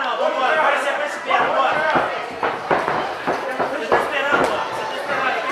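Gloves and kicks thud against a fighter's body.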